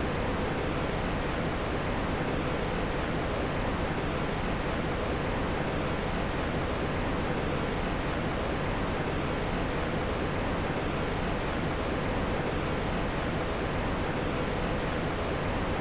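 A fire crackles and roars steadily.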